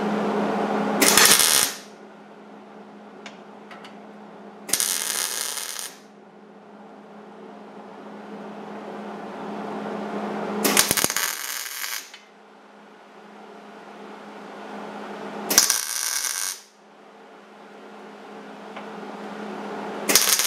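An arc welder crackles and buzzes in short bursts.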